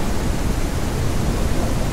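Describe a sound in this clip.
Heavy rain patters steadily on a wooden deck.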